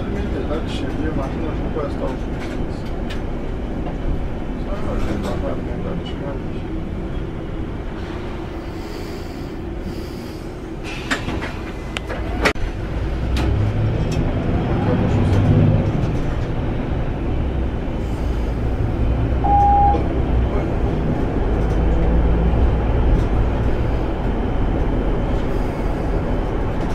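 Tyres roll on smooth asphalt.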